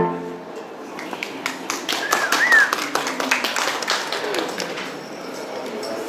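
An audience claps in a room.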